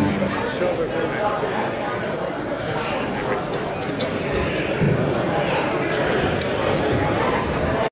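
A live band plays loudly in a large hall.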